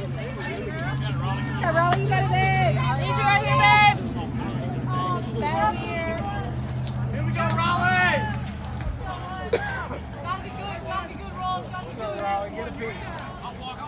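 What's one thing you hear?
Young women chant and cheer in high voices nearby, outdoors.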